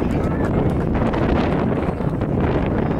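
A crowd of spectators cheers from the sideline.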